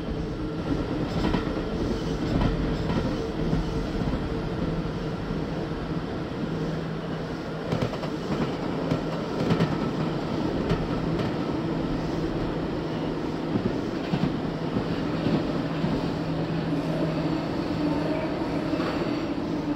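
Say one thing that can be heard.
A subway car rumbles and rattles along the tracks.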